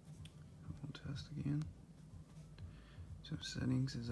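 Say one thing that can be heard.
A finger taps lightly on a phone's touchscreen.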